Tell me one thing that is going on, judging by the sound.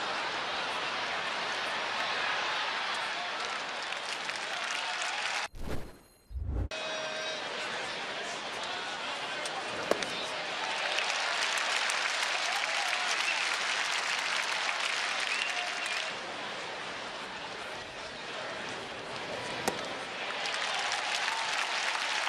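A large crowd murmurs steadily outdoors.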